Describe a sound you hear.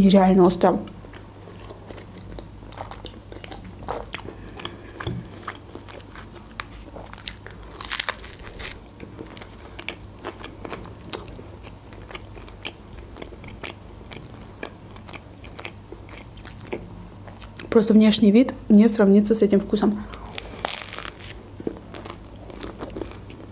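A young woman chews crunchy food close to a microphone.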